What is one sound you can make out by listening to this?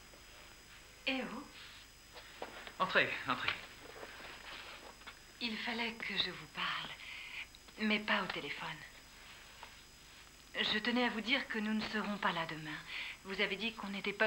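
A woman speaks in a hushed, tense voice nearby.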